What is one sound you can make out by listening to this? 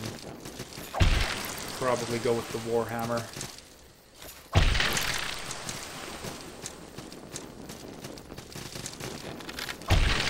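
Sword slashes and impacts ring out.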